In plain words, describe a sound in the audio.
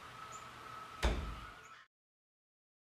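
A deep whooshing thud sounds as a choice is confirmed and fades out.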